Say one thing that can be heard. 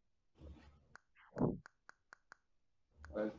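Short clicks sound as keys are tapped on a keyboard.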